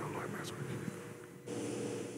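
A man prays quietly into a microphone.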